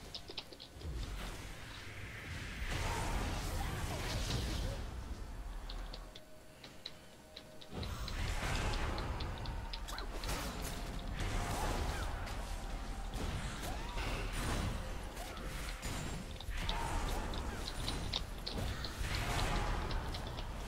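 Magical blasts whoosh and crackle in a fight.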